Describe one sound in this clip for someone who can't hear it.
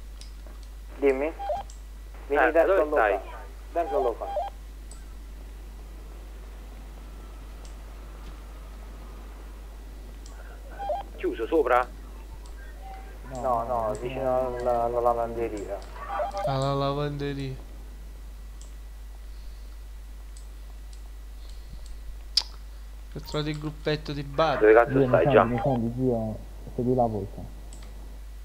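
A young man talks with animation close to a microphone, in bursts.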